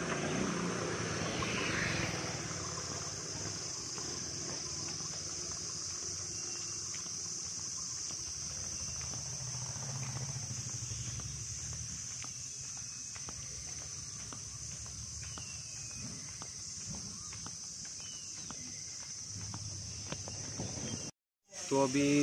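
Footsteps walk along a road outdoors.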